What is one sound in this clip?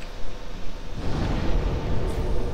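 A low rushing sound swells up.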